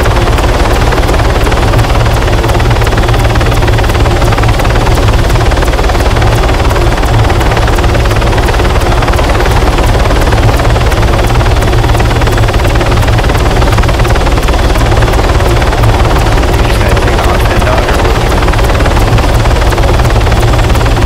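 A helicopter's rotor thumps loudly and steadily close by.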